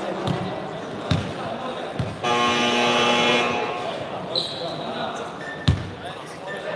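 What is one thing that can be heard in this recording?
A basketball bounces on a hard floor in an echoing hall.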